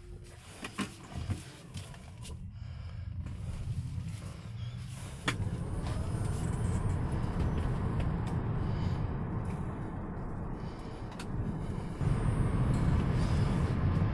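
Tyres roll on a road inside a moving car, the rumble growing louder as it speeds up.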